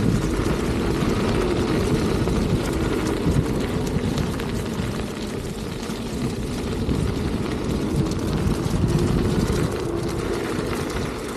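An electric motorbike whines softly as it rides along a path.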